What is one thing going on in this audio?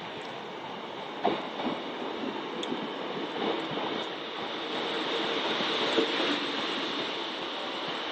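A train rolls slowly into a platform with squealing brakes.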